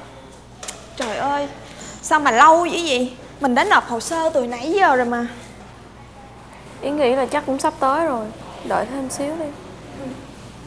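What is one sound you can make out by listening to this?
A young woman speaks with emotion close by.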